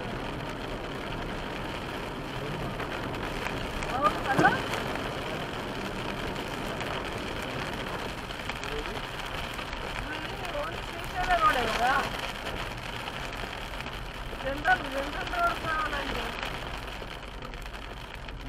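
Tyres hiss along a wet road.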